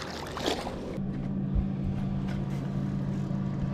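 An outboard motor hums steadily nearby.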